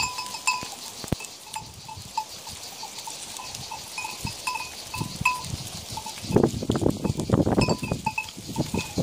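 Goats tear and munch grass close by.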